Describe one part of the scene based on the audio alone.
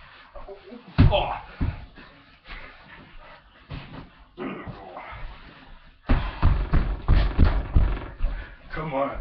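A body thuds onto a mattress.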